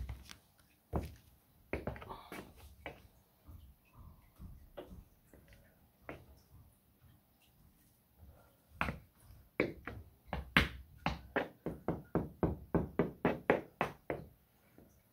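Hard-soled shoes stamp and tap on a wooden floor.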